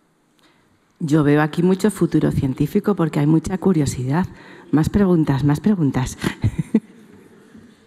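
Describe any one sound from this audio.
A woman speaks with animation through a microphone.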